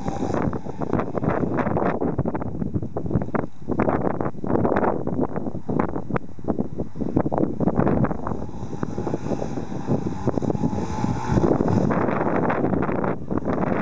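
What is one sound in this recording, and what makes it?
A motorcycle engine putters and revs nearby.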